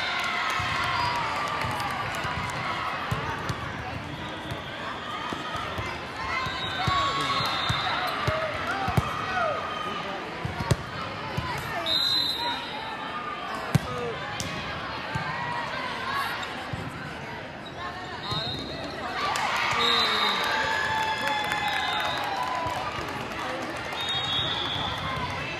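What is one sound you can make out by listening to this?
A crowd of voices chatters and cheers throughout a large echoing hall.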